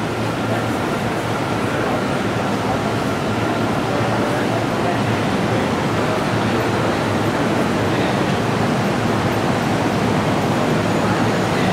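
A crowd murmurs and footsteps shuffle in an echoing hall.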